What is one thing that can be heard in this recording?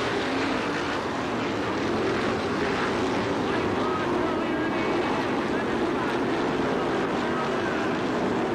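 Loud racing car engines roar and rev.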